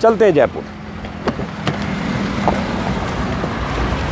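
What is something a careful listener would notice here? Car doors open with a click.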